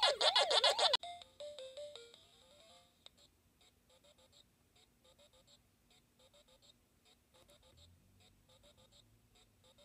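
A small game machine plays a falling jingle of beeps, then soft bleeps and chirps.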